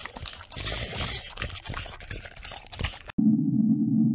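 A small dog crunches and laps food from a bowl close by.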